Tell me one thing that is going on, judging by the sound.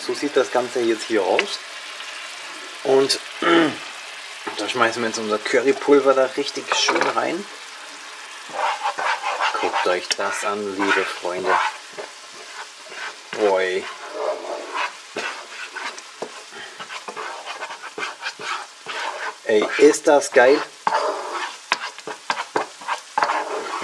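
A spatula scrapes and stirs in a frying pan.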